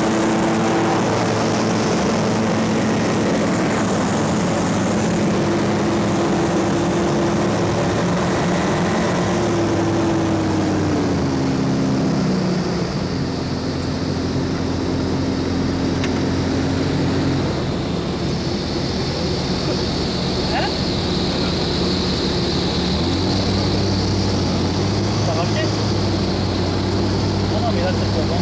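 A small plane's engine drones loudly and steadily, its pitch shifting as it flies.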